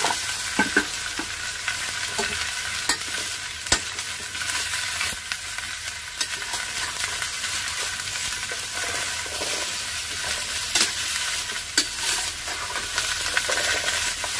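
Oil sizzles steadily in a pan.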